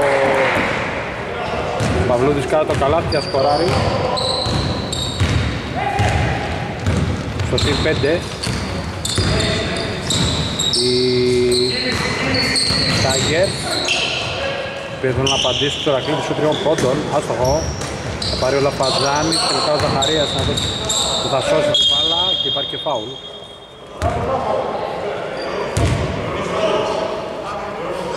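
Men shout and call out to each other across the hall.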